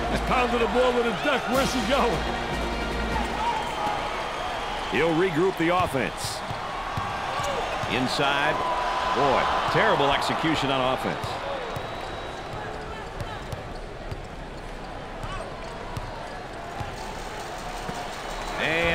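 A basketball thumps on the court as it is dribbled.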